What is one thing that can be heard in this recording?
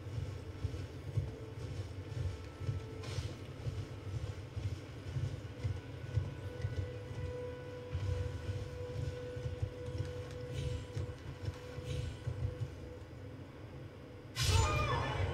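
Horse hooves thud steadily at a gallop.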